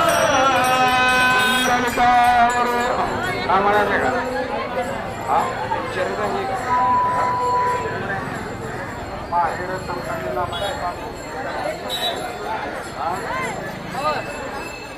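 Many people talk at once in a bustling crowd.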